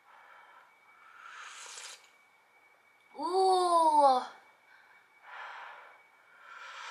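A young woman blows on hot soup.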